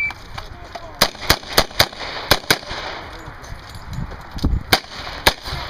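A pistol fires a quick series of loud shots outdoors.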